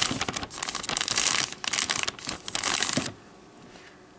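Small granules pour and patter into a plastic bag.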